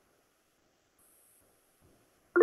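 A soft notification chime sounds once.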